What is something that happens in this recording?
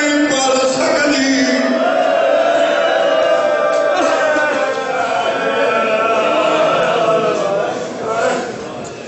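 A man sings a lament with passion through a microphone and loudspeakers.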